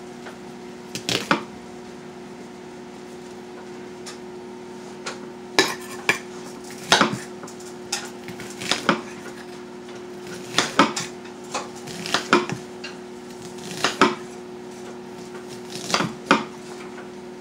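Objects clink and knock on a countertop.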